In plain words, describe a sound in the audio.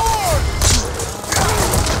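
A fist thuds into a man's body.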